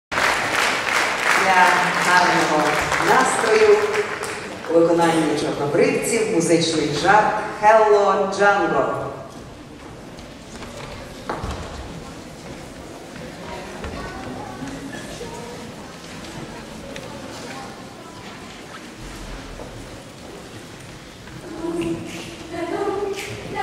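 A large choir sings together in an echoing hall.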